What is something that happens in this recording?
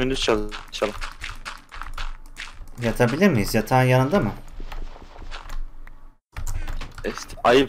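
Dirt blocks crunch in a quick series as they are dug away.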